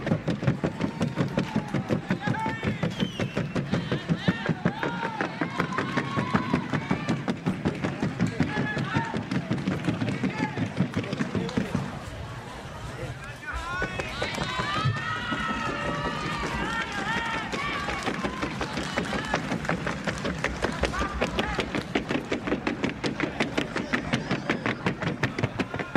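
Horse hooves clatter in a fast, even rhythm on a wooden board.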